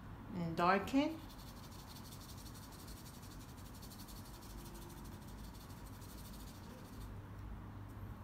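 A paintbrush softly brushes across a canvas.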